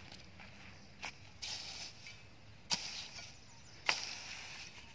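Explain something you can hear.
A rake knocks sharply against the ground.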